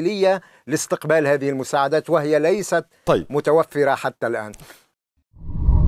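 A middle-aged man speaks with animation through a microphone.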